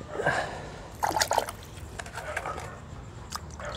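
Water splashes softly as a hand scoops it from a bucket.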